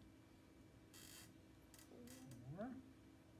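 A marker squeaks across a whiteboard.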